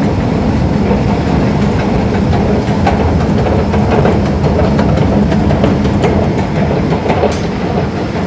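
An escalator hums and rumbles steadily close by.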